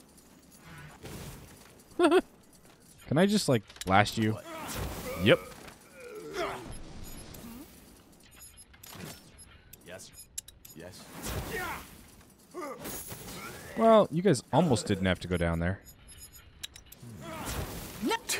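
Fiery spells burst and crackle during a fight.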